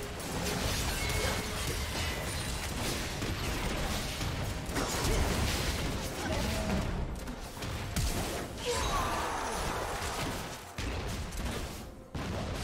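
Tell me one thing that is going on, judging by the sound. Magic blasts and impacts crackle and boom in a fast video game battle.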